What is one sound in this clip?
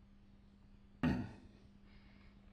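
A plastic toy is picked up with a loud knock.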